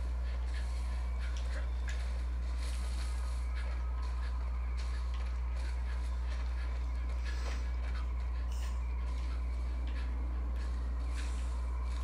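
Footsteps brush and crunch through dry grass.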